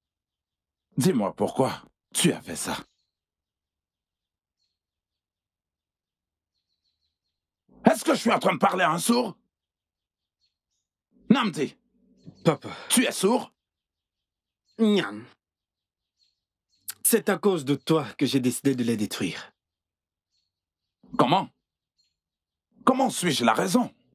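A middle-aged man speaks with animation close by.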